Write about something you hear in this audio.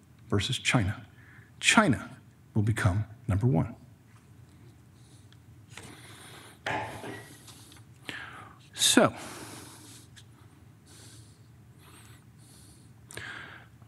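An older man speaks calmly into a microphone, with pauses.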